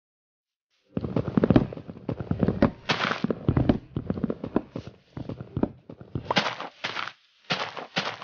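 An axe chops rapidly at wood.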